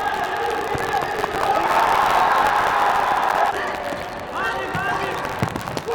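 A futsal ball is kicked hard on an indoor court.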